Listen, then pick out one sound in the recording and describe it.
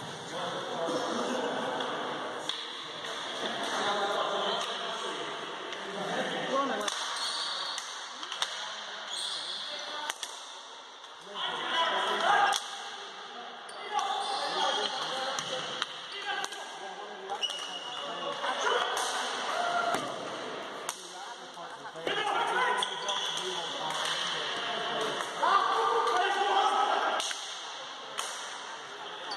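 Players shout and call out to each other across a large echoing hall.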